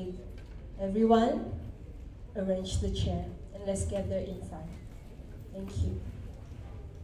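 A young woman speaks loudly through a microphone in a large echoing hall.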